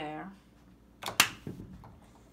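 A small plastic toy clicks down onto a hard surface.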